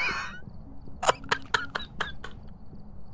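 A young man laughs loudly into a microphone.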